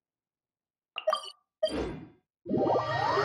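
A soft click sounds twice.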